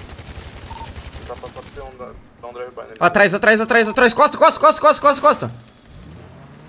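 A young man shouts loudly with animation close to a microphone.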